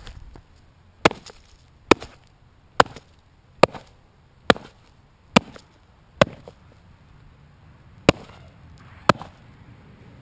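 A hatchet strikes hard again and again in sharp, evenly spaced blows.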